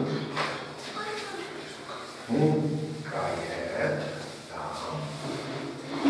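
A cloth rubs across a chalkboard.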